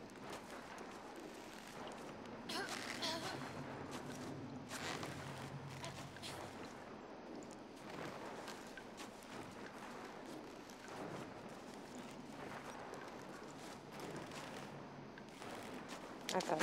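A body scrapes and drags over rough ground.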